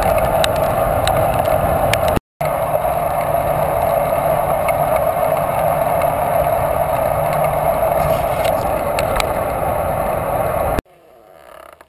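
Wind roars loudly and steadily against a fast-moving bike.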